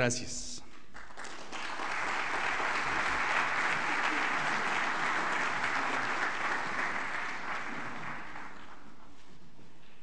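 An audience applauds steadily, then the clapping fades.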